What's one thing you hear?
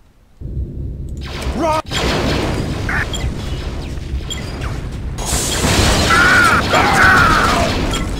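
Blaster shots fire rapidly.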